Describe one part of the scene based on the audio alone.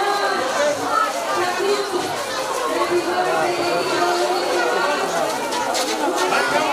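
A crowd of adults and children chatters close by.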